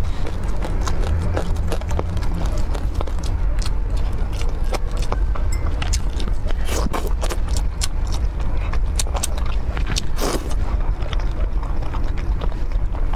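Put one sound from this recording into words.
A woman chews food loudly and wetly, close to a microphone.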